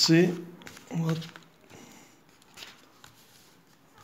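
A sheet of paper rustles as a hand slides over it.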